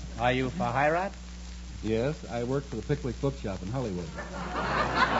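An older man speaks with animation, heard through an old, thin-sounding radio recording.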